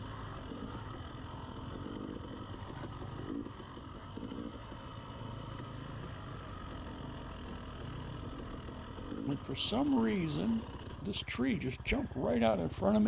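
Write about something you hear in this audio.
A two-stroke dirt bike rides along a trail, its engine revving up and down.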